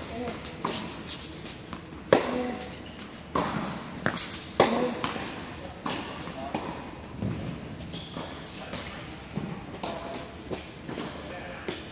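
Sneakers squeak and shuffle on the court.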